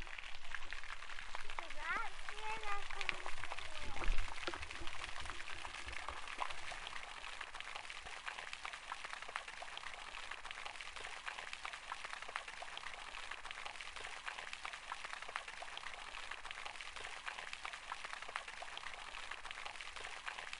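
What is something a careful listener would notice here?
Fountain water splashes and patters steadily into a pool.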